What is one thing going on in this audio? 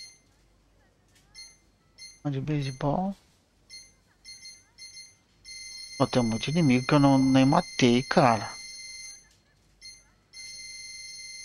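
Short electronic beeps sound as a menu cursor moves.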